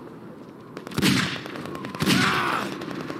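A revolver fires loud, echoing shots.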